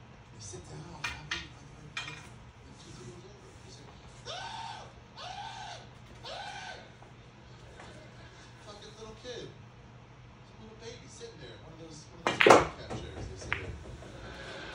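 Pool balls click against each other on a table.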